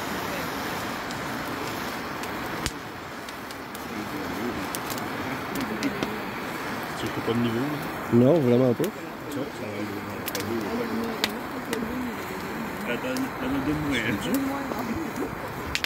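A gas torch roars steadily.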